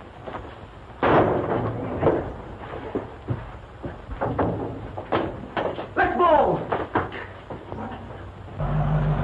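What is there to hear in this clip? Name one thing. Blows and thumps land during a fistfight.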